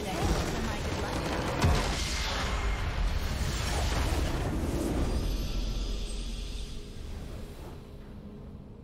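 A loud magical explosion booms and rumbles, then slowly fades.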